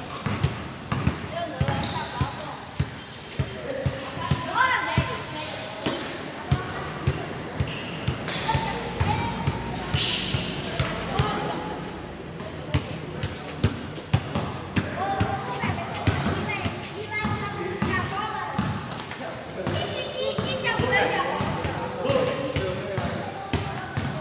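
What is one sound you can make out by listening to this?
A ball thumps against a hard floor.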